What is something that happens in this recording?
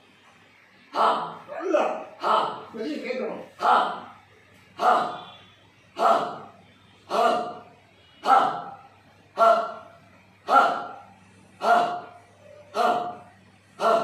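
A man counts aloud nearby in a steady, even rhythm.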